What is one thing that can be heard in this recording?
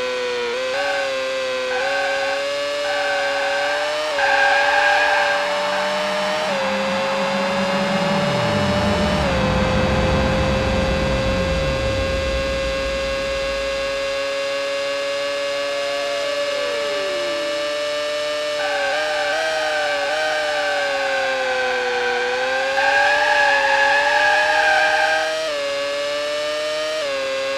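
A racing car engine whines at high revs, rising and falling as the car shifts gears.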